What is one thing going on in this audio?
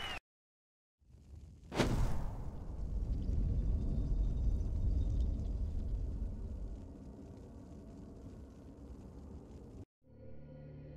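Torch flames burn with a low, steady roar.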